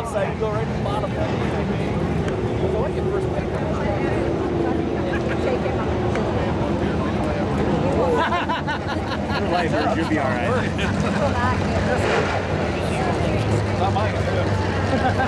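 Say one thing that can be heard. Race car engines rumble in the distance.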